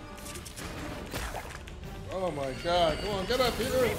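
Game sound effects whoosh and crash.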